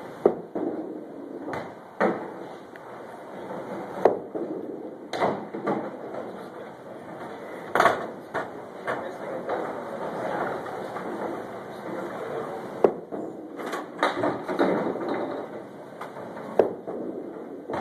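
A candlepin ball rolls down a wooden lane.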